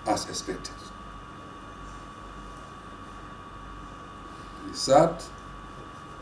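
A middle-aged man speaks a few short words calmly, close by.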